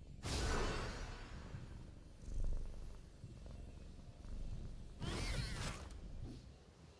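Game spell effects whoosh in short bursts.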